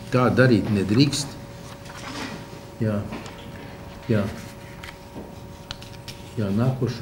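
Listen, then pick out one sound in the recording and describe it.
Papers rustle on a table.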